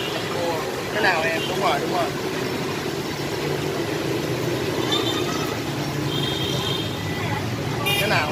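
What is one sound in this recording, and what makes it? Oil sizzles and bubbles steadily in a wok.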